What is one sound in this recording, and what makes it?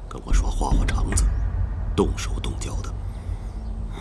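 A middle-aged man speaks in a low voice.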